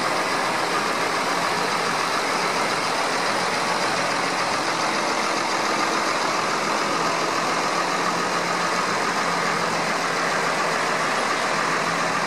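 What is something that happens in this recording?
Tyres splash through puddles on a wet track.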